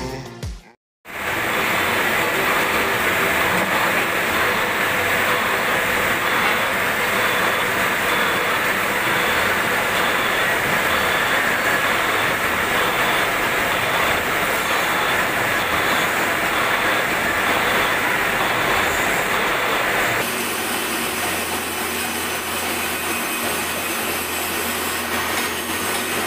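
A metal lathe spins with a steady, loud whirring hum.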